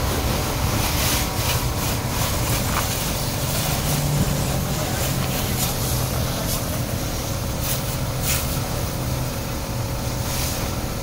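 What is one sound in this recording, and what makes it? A pressure washer sprays water in a steady hiss.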